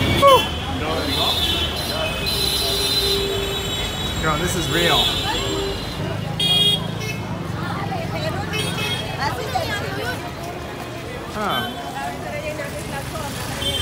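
Motorbike engines hum and pass close by.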